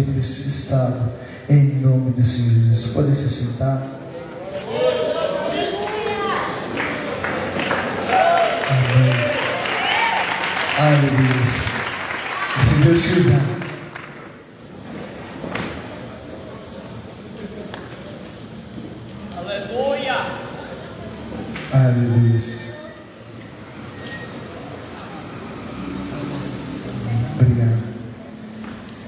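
A man speaks with animation through a microphone and loudspeakers, echoing outdoors.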